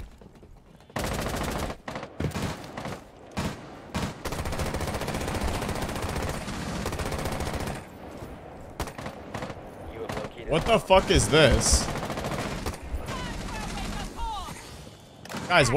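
Rapid gunshots fire in short bursts.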